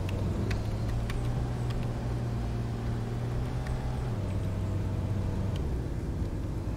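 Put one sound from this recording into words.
A car engine hums steadily, then drops in pitch and fades as the car slows to a stop.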